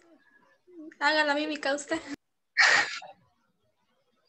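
Young women laugh over an online call.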